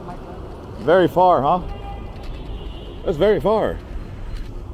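A man talks loudly outdoors, close by.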